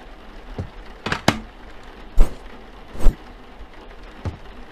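A sandwich toaster lid clicks and clunks as it opens and closes.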